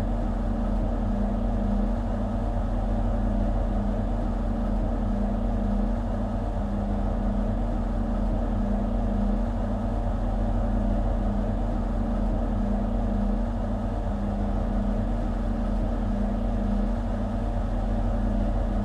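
A train engine idles with a steady low hum.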